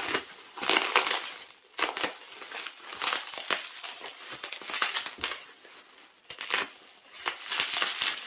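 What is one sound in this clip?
A utility knife slices through plastic wrap.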